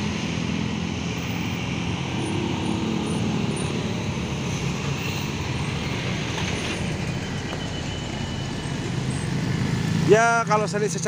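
Steady traffic rumbles along a busy road outdoors.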